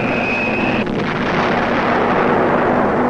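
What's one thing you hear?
A bomb explodes with a deep boom.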